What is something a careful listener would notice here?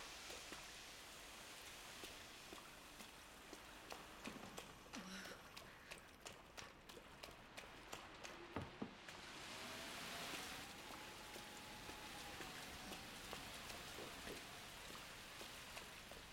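Footsteps tap on a hard floor in a quiet, echoing corridor.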